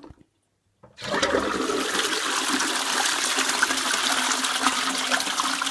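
A toilet flushes with a loud rush of water.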